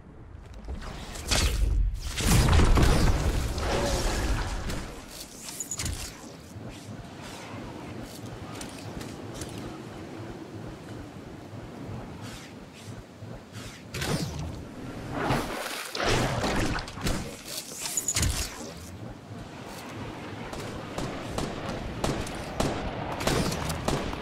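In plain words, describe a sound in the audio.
Wind rushes steadily, swelling now and then.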